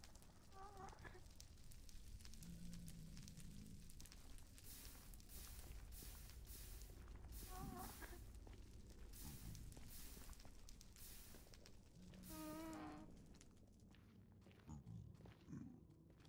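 Fire crackles and hisses nearby.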